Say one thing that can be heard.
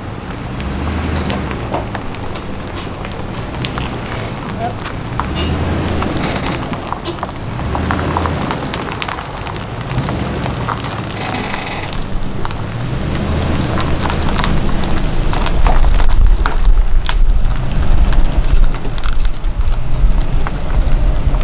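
Tyres crunch slowly over gravel.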